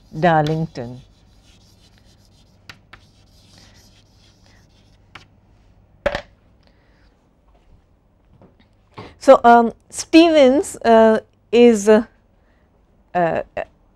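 A woman speaks calmly into a microphone, lecturing.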